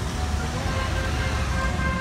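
A car engine hums nearby.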